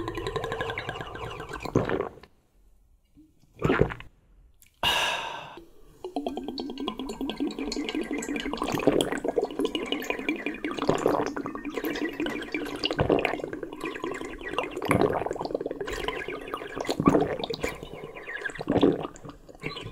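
A man slurps and sucks a drink loudly close by.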